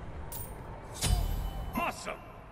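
A game sound effect whooshes as a menu closes.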